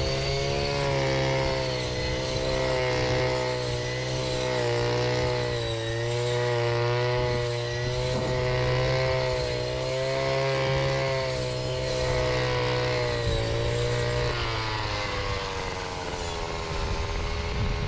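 A string trimmer whines steadily, its motor pitch rising and falling.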